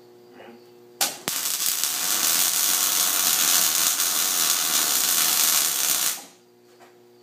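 An arc welder crackles and hisses steadily.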